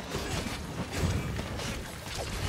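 A game explosion booms.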